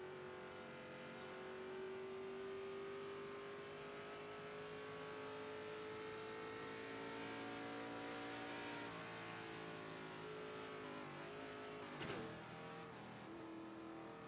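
A race car engine drones steadily, rising and falling in pitch as it shifts.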